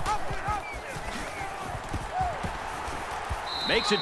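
Football players' pads thud together in a tackle.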